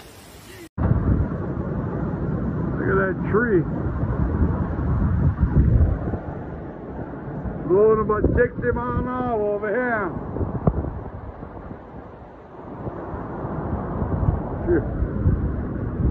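Strong wind roars and gusts hard outdoors.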